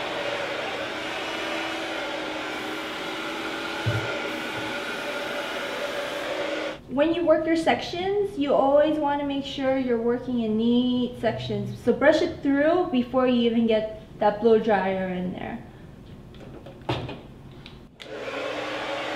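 A hair dryer blows with a steady whir.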